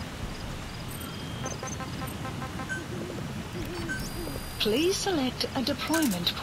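Soft electronic menu beeps chime.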